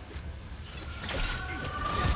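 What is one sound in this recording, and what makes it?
An electric blast crackles and hums loudly.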